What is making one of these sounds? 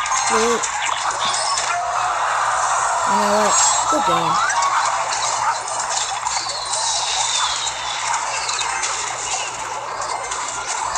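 Video game battle effects clash and crackle.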